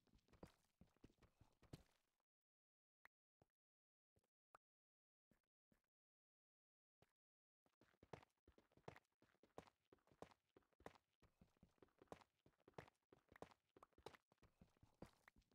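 A pickaxe chips rapidly at stone.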